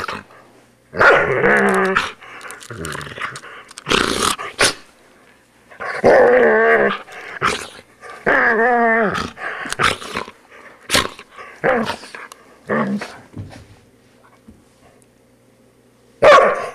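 A dog growls and snarls playfully up close.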